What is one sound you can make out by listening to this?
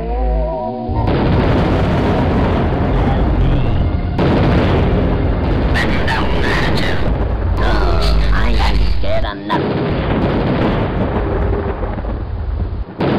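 Video game energy blasts roar and crackle loudly.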